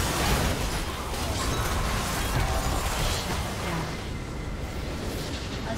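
Spell effects whoosh and crash in a fast fight.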